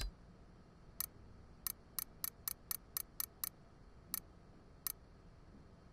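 Sharp hits crack in quick succession.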